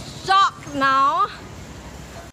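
A young woman speaks excitedly close to the microphone.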